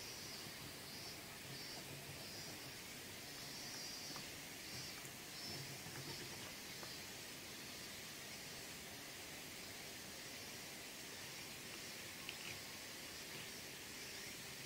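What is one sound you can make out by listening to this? Pastel scratches and rubs softly on paper.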